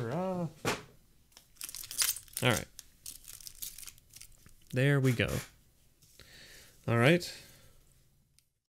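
Playing cards slide and tap on a soft mat.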